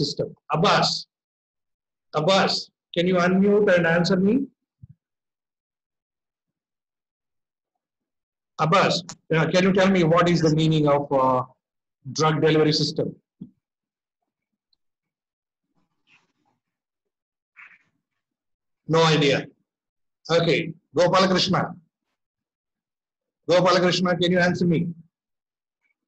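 A young man speaks over an online call in short bursts, with pauses between.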